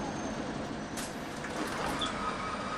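Bus doors open with a hiss and a clunk.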